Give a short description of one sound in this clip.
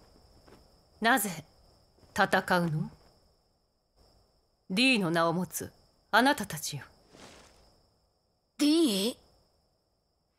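A woman speaks calmly and slowly.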